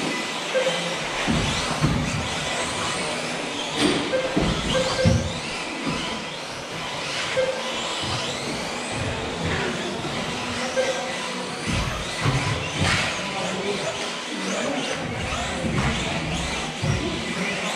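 Small electric race cars whine at high speed around a track.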